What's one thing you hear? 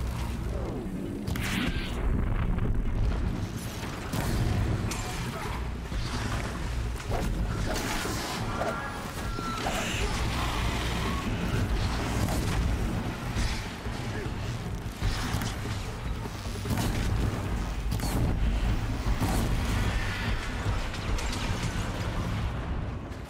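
Explosions and impacts crack and boom in a fight.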